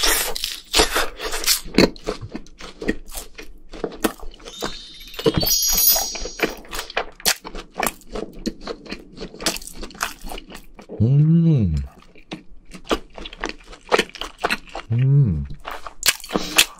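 A young man crunches and chews crispy food close to a microphone.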